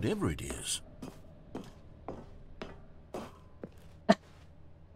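Footsteps thud at an even pace on a hard floor.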